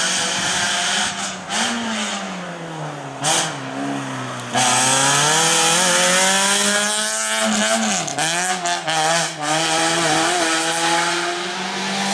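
A race-prepared hatchback engine revs hard, rising and falling through gear changes.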